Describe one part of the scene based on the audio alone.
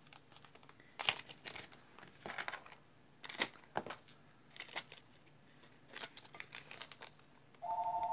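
Small metal earring parts click and rustle as hands handle them.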